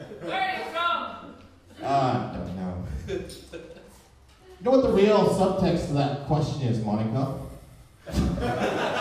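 A man speaks with animation into a microphone through a loudspeaker.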